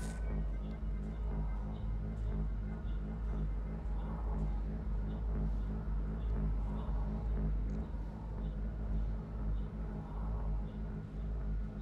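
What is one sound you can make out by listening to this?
A glowing energy ball hums and bounces with soft thumps.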